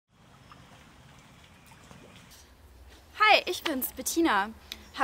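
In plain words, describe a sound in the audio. Shallow water trickles over stones.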